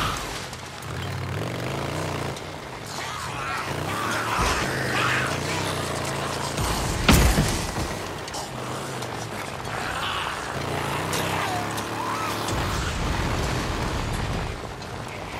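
A motorcycle engine rumbles and revs up and down.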